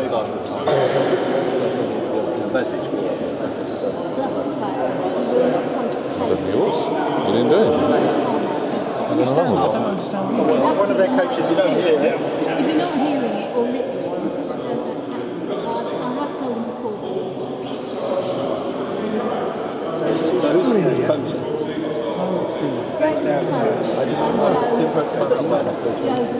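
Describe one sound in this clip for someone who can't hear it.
Young men chat casually close by in a large echoing hall.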